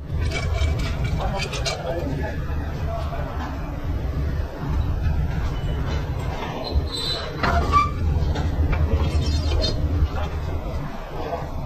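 A metal chain rattles and clinks.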